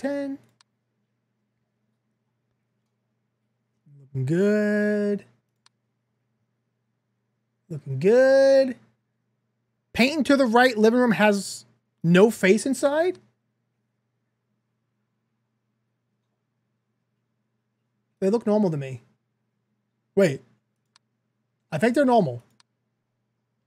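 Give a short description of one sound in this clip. A man talks with animation into a close microphone, in short bursts.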